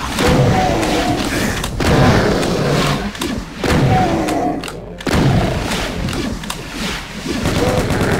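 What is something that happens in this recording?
A shotgun fires loud blasts again and again.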